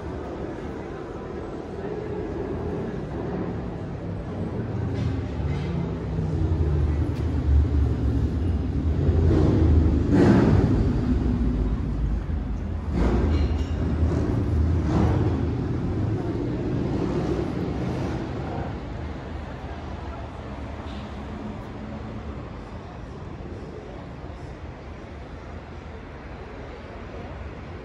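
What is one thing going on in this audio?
Wind blows outdoors, rumbling steadily.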